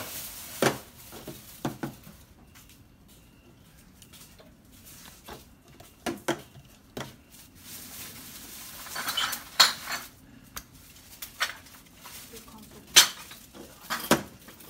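Plastic cups clatter and tap on a metal table.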